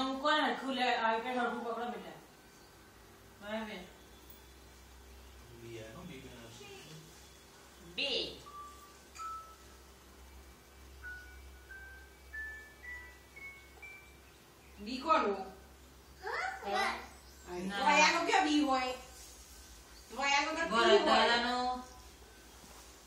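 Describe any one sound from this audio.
A woman talks animatedly to a small child close by.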